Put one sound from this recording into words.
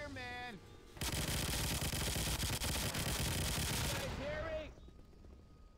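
A machine gun fires a long burst of rapid shots.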